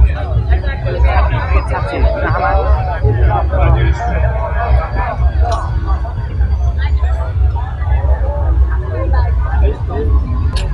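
Young women talk and chatter nearby, outdoors.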